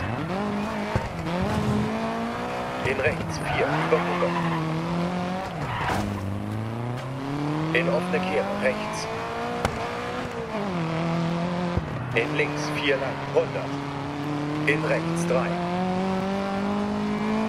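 A rally car engine revs hard, rising and falling as the gears shift.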